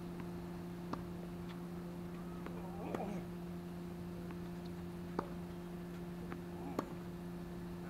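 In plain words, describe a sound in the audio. A tennis racket strikes a ball in the distance outdoors.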